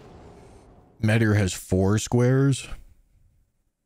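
A young man speaks loudly into a close microphone.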